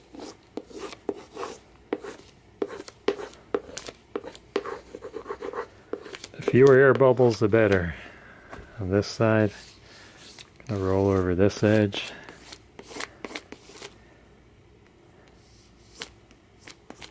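A stiff plastic sheet crinkles and crackles as it is handled.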